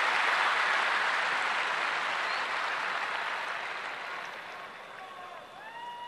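A large crowd cheers and applauds outdoors, then fades.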